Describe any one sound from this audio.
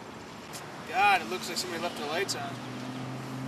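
A young man talks outdoors.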